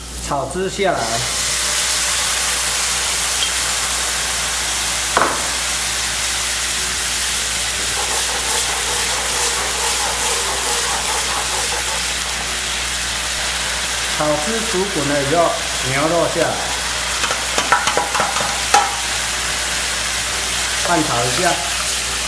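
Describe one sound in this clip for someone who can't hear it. Food sizzles loudly in a hot pan.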